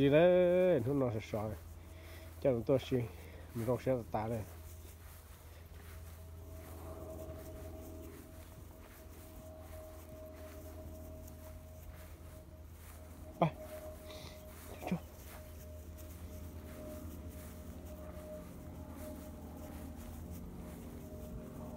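Small footsteps rustle on dry grass.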